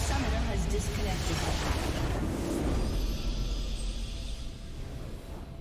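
A large structure crumbles in a loud, rumbling explosion.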